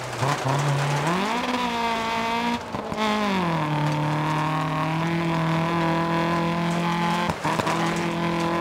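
A rally car engine revs hard and shifts through gears.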